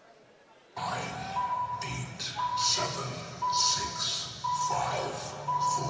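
A young man chants rapidly.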